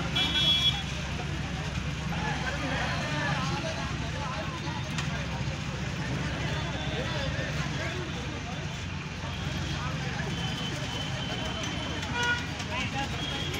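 A vehicle horn honks nearby.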